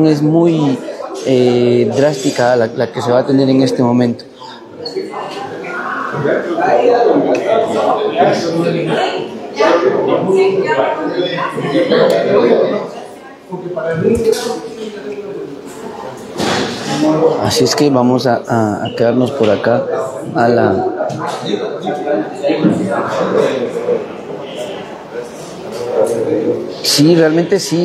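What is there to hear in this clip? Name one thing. Several men talk over one another nearby.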